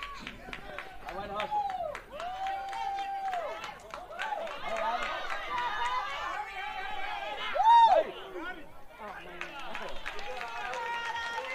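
Young players shout and cheer loudly outdoors.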